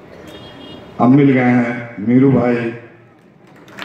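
A man speaks loudly through a microphone and loudspeakers in a large echoing hall.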